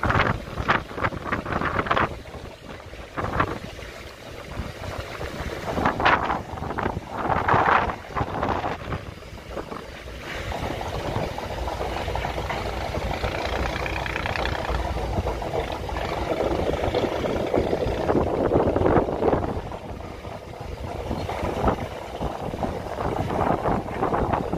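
Wind blows outdoors, buffeting loudly.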